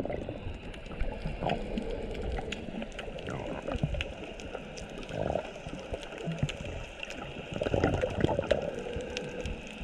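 Water swishes and rumbles in a muffled, underwater way.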